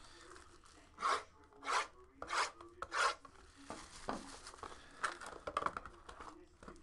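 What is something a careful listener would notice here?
Cardboard packs slide and tap against each other.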